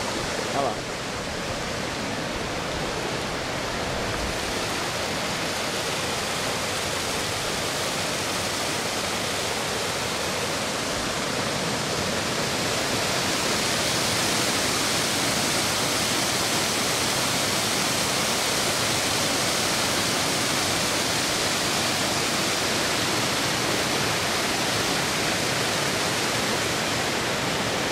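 Water rushes and roars steadily over rocks, growing louder.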